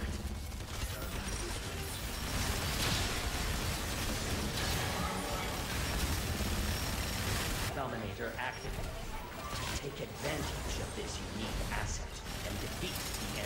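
Rapid gunfire and explosions rumble from a game.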